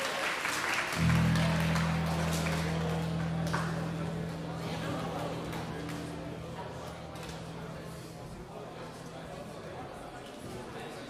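A low electric chord rings out and slowly fades.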